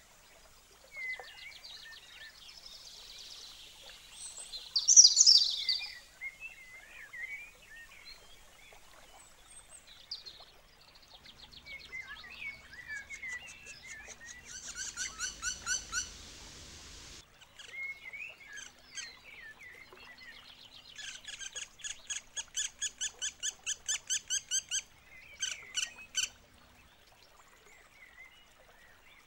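Birds chirp and sing nearby.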